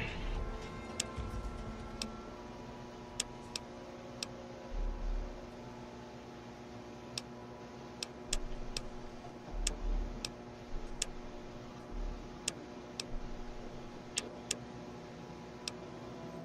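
Short game interface clicks tick now and then.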